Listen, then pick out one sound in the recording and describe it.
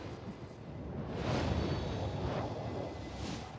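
A deep boom bursts out as a glowing light flares.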